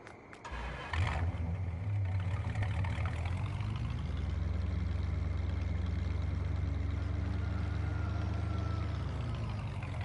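A pickup truck engine starts and drones steadily.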